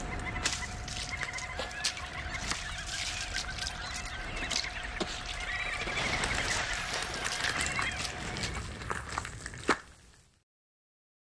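Water drips and splashes.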